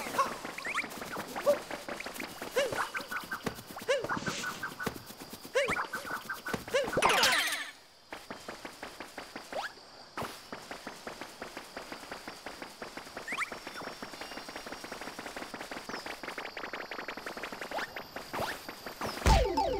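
Quick footsteps patter in a game.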